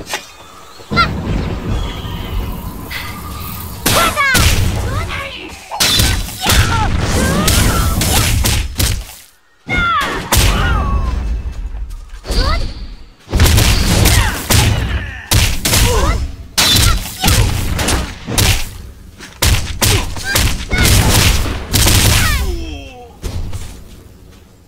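Loud combat blasts and hits burst again and again.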